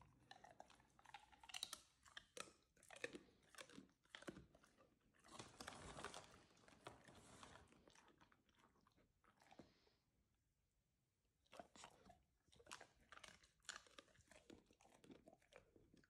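A dog chews and licks its lips.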